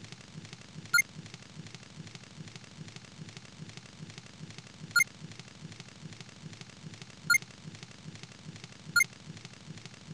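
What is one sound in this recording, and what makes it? A short chime sounds each time a line of dialogue comes up.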